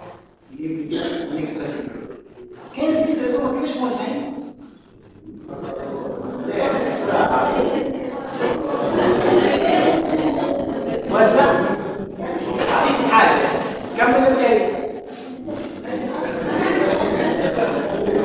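A middle-aged man speaks calmly and thoughtfully.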